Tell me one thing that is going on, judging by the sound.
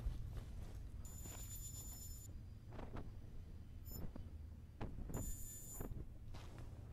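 A high electronic tone hums as a menu opens and closes.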